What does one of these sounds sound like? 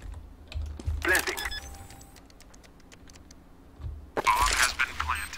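A bomb keypad beeps as a code is typed in.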